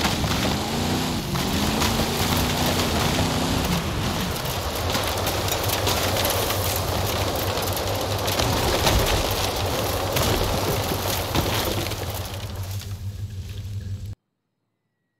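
Tyres crunch and skid over loose gravel and rocks.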